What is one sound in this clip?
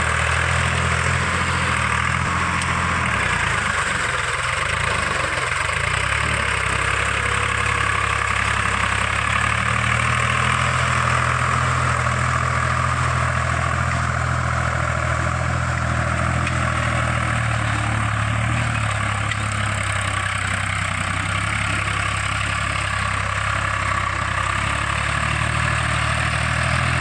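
A tractor engine chugs steadily close by.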